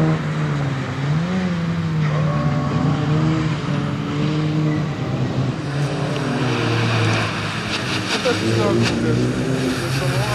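Small rally car engines rev hard and roar, rising and falling in pitch.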